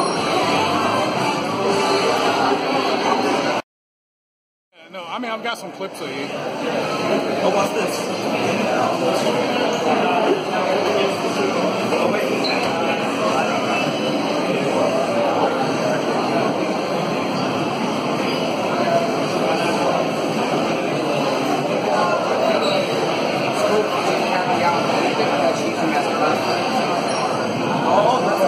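Upbeat game music plays from loudspeakers.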